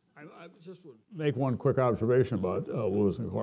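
An elderly man speaks calmly into a microphone, heard through loudspeakers in a large hall.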